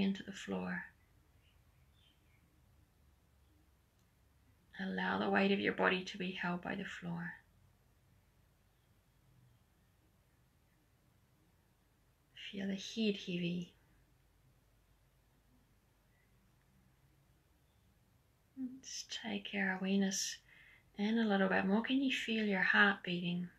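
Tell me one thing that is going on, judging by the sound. A woman speaks calmly and slowly nearby, with pauses.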